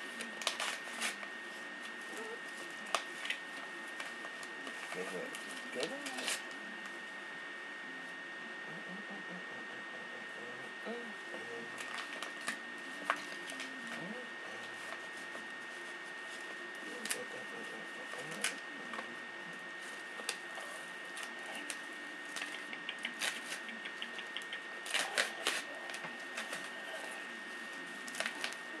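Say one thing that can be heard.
Small objects click and rustle in a man's hands close by.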